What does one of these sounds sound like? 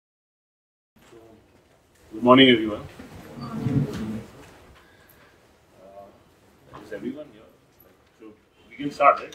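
A man speaks through a microphone in a room with some echo.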